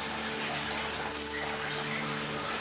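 A small monkey gives a brief, very high-pitched squeaking call.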